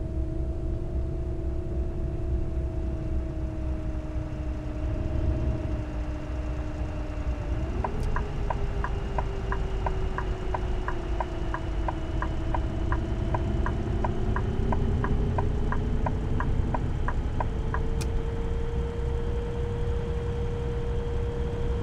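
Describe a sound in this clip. A bus engine drones steadily while driving.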